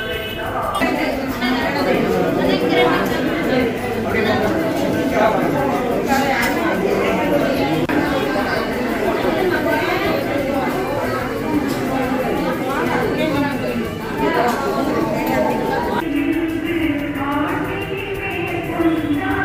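A crowd of men and women murmur and chant nearby.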